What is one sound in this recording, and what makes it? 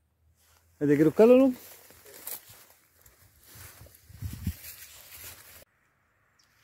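Leaves and twigs rustle close by as someone pushes through undergrowth.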